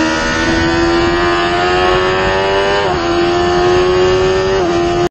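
A motorcycle engine screams at high revs, its pitch climbing steadily and dropping sharply with each gear change.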